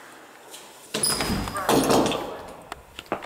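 A door unlatches and swings open.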